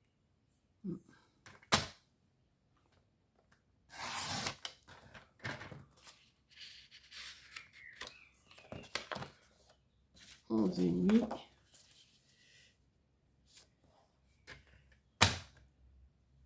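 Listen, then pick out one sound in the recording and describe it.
A sliding paper trimmer blade cuts through card.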